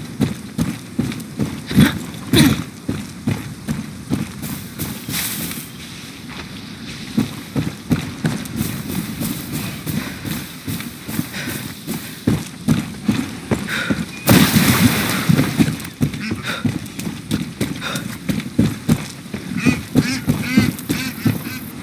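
Footsteps crunch steadily on a stone path.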